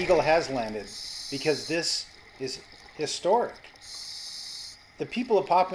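A diver breathes out through a regulator, with bursts of bubbles hissing underwater.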